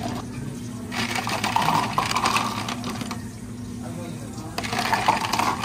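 Ice cubes clatter and clink into a plastic cup.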